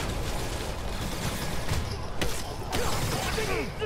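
Energy guns fire with sharp zapping blasts.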